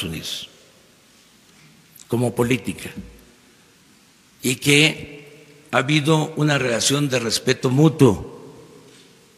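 An elderly man speaks calmly and firmly into a microphone, with pauses.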